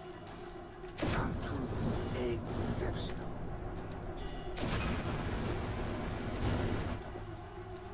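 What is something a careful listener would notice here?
A flamethrower roars in loud bursts.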